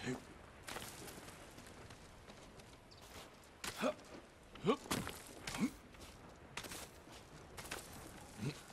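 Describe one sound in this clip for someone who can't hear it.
A climber's hands and feet scrape and thud against rock.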